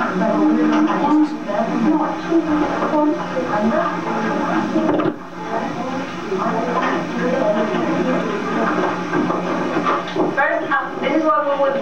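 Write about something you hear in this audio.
Several teenagers chatter and talk over one another nearby.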